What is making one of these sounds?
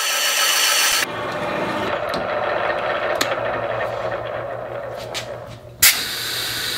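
A cutter grinds against metal.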